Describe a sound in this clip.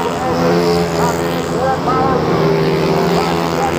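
A motorcycle engine revs up close by, rising in pitch.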